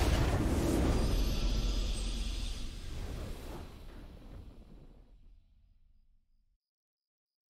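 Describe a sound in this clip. A triumphant game victory fanfare plays loudly and slowly fades away.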